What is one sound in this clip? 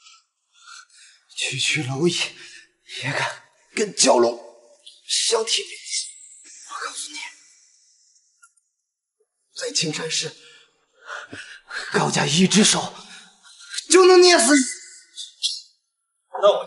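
A young man speaks angrily, shouting at times.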